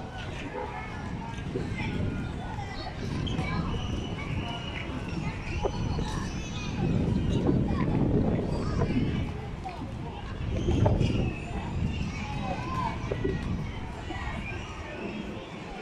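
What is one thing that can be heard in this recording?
Hockey sticks knock against a ball.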